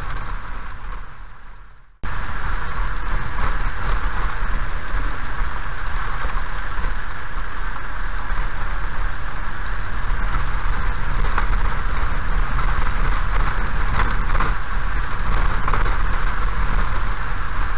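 Raindrops patter on a car's windscreen.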